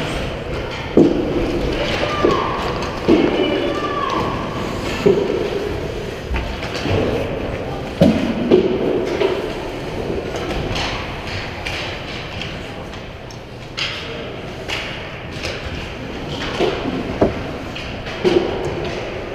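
Hockey sticks and pucks clack sharply now and then.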